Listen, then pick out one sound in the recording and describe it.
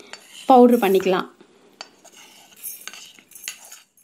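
Seeds patter into a metal jar.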